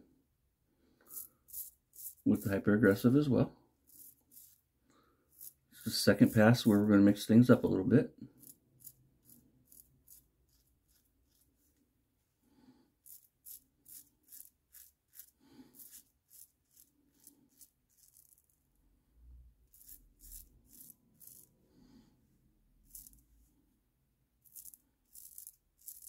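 A safety razor scrapes through lathered stubble in short strokes.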